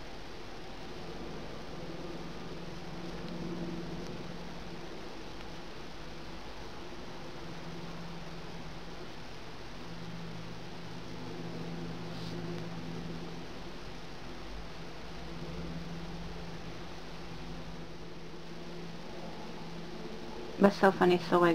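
Yarn rustles softly as a crochet hook pulls it through loops.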